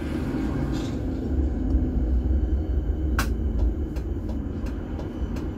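A tram rumbles steadily along its tracks.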